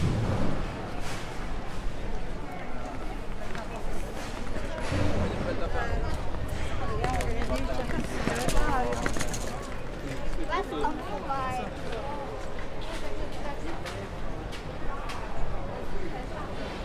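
Footsteps shuffle on cobblestones.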